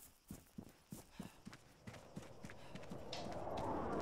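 Footsteps crunch through dry grass at a steady walking pace.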